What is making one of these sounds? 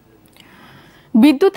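A young woman reads out calmly into a microphone.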